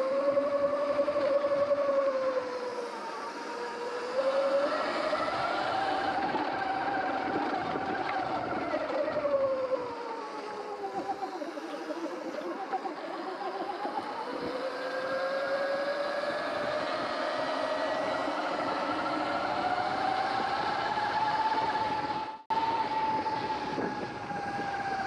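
Tyres roll over a dirt trail.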